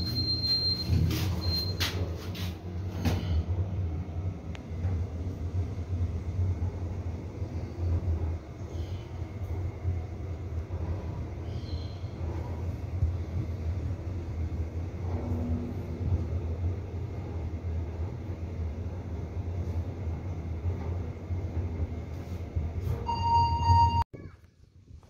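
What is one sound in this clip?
A passenger elevator car hums as it descends.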